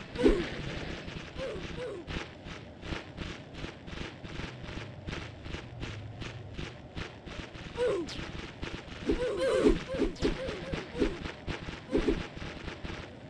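Creatures let out high, falling screeches in quick bursts.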